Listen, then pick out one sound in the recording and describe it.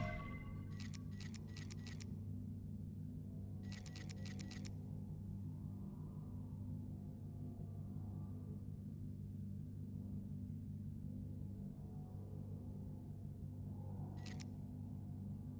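Short electronic menu clicks sound in quick bursts.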